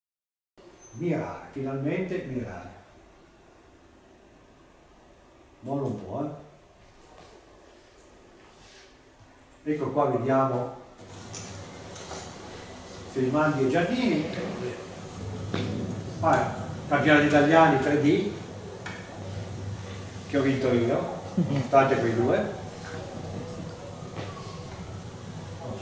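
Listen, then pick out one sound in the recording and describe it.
An elderly man speaks calmly in a room with a slight echo, in short bursts with pauses.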